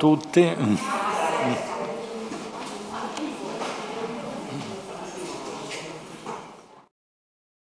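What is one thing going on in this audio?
People in an audience chatter and laugh.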